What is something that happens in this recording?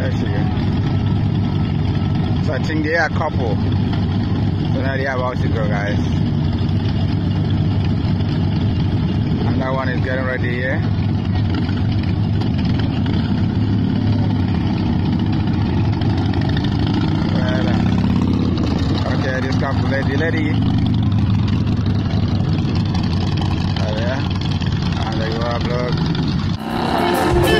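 Motorcycle engines idle and rumble steadily close by.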